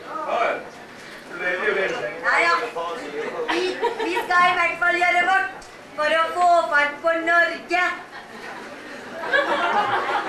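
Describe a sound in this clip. A woman sings theatrically.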